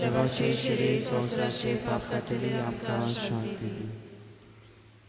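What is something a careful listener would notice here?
An older man sings a chant through a microphone in an echoing hall.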